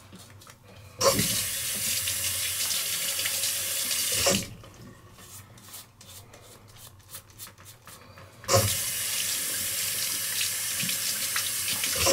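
Electric clippers buzz loudly close by.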